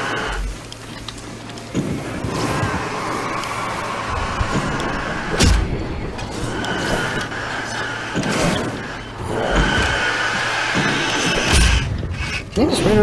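A flare hisses and crackles as it burns.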